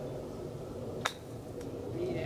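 A golf club strikes a ball with a crisp click.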